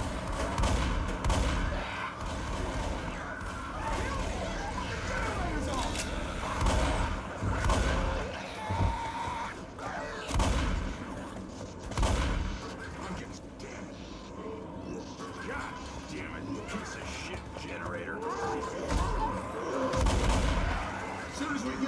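A shotgun fires loud, booming blasts several times.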